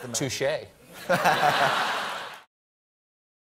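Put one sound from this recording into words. Men laugh heartily.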